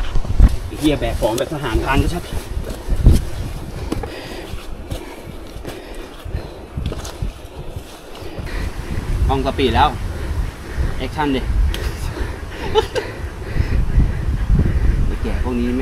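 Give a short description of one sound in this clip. Footsteps crunch on leaves and dirt.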